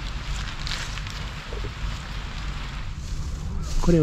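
Dry leaves rustle under a dog's paws outdoors.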